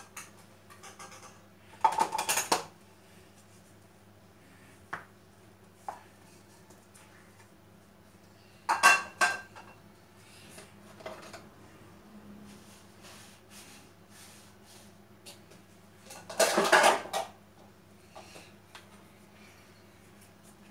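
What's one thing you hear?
A cloth rubs over plastic dishes.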